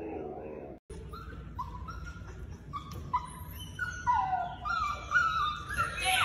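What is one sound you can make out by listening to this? A puppy yelps in short rising cries.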